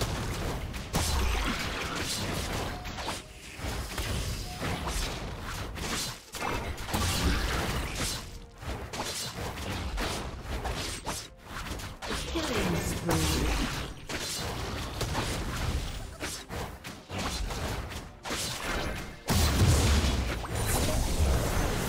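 Weapon blows land with sharp hits.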